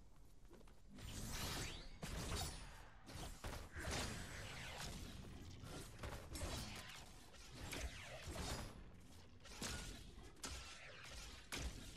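Game sword slashes and energy blasts whoosh and crash in quick bursts.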